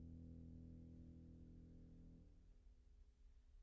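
A grand piano chord rings out and slowly fades.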